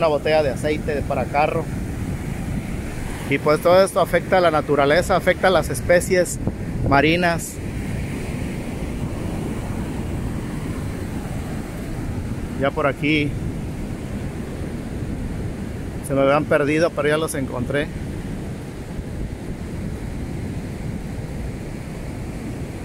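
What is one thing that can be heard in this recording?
Waves wash up onto a sandy shore.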